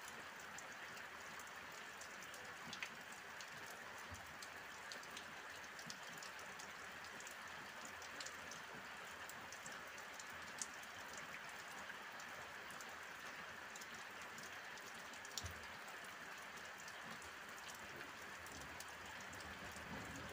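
Raindrops tap sharply on a canopy close by.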